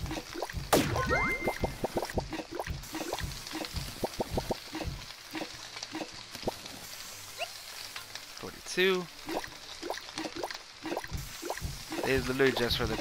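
Ingredients clatter and pop as they drop into a pan.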